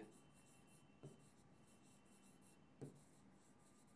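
A pen taps against a hard writing surface.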